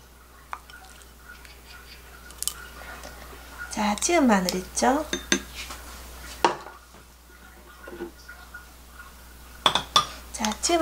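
A spoon scrapes and taps against a glass bowl.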